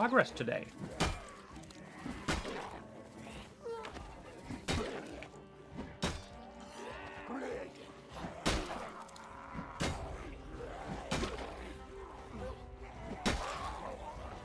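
Heavy blows thud repeatedly against bodies in a scuffle.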